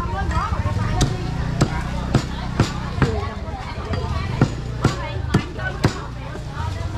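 A cleaver chops meat on a wooden block with sharp knocks.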